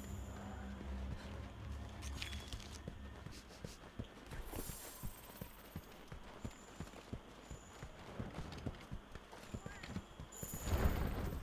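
Footsteps crunch quickly on dry ground.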